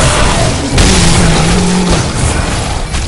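A creature lets out a deep, rasping roar.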